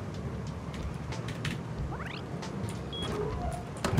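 A heavy metal door swings open with a creak.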